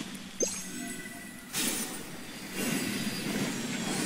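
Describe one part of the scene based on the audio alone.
A magical blast bursts with a bright whoosh.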